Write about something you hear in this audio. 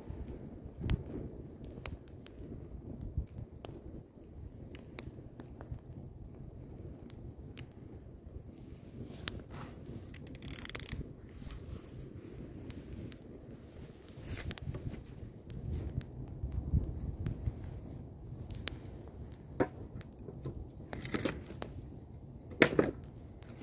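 A wood fire roars with a low, steady rumble.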